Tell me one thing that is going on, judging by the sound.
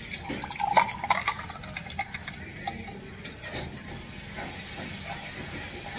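Liquid pours from one metal cup into another.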